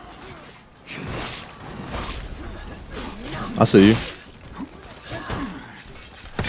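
Swords clash and clang in a battle.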